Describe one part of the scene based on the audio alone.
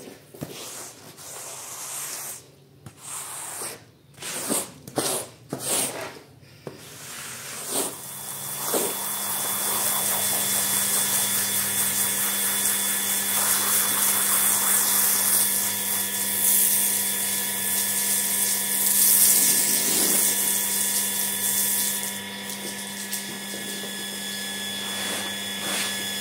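A rubber squeegee scrapes wetly across a mat.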